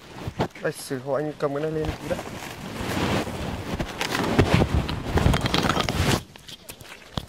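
Young men talk and call out to each other nearby outdoors.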